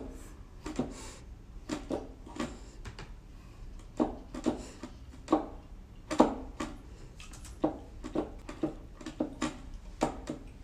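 Keyboard keys clack and thump under quick fingers.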